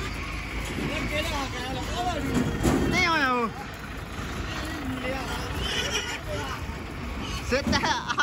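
Pigs squeal and grunt loudly in a truck.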